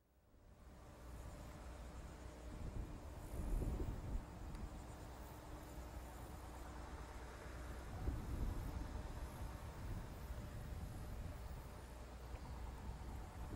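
A distant rocket roars steadily with a deep rumble.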